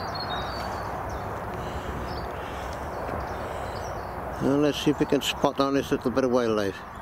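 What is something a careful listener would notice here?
Wind rustles softly through bare branches outdoors.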